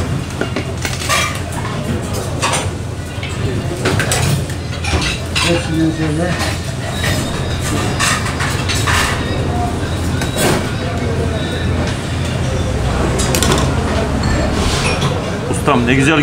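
Metal serving spoons clink and scrape against metal food trays.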